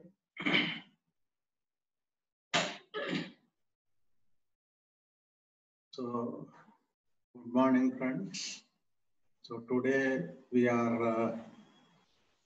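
A man speaks calmly through a microphone in short phrases with pauses.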